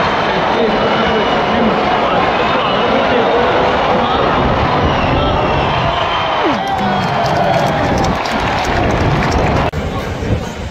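A large crowd roars and chants loudly in an open stadium.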